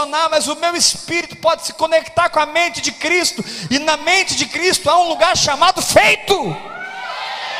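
A man preaches loudly and with passion through a microphone.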